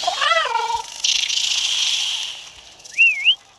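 A magical sparkling shimmer rings out.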